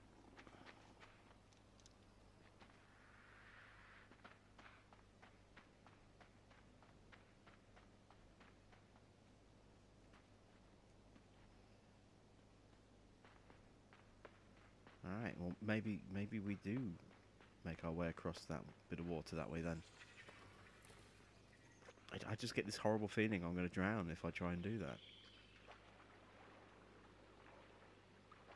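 Soft footsteps patter on dirt.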